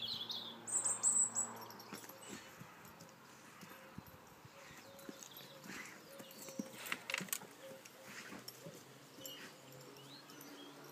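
A large dog and a small dog scamper and tussle on grass.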